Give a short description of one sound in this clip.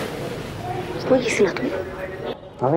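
A young woman asks a short question nearby.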